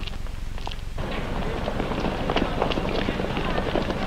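Footsteps crunch on a gravel path outdoors.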